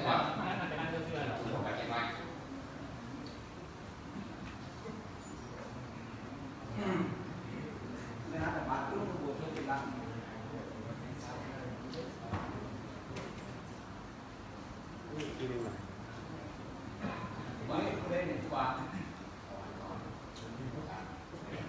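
A man speaks calmly through a microphone and loudspeaker in an echoing hall.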